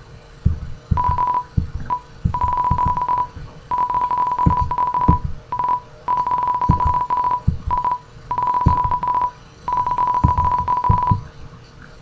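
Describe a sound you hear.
Rapid electronic blips chatter in short bursts as game dialogue text types out.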